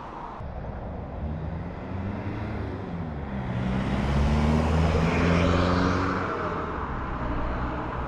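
A car drives past close by, its engine rising and then fading.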